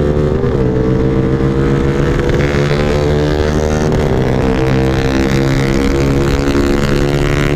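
A motorcycle engine hums steadily with small changes in pitch.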